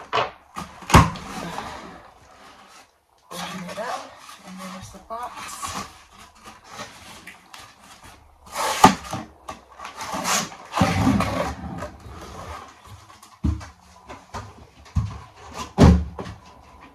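Cardboard boxes knock and thump together.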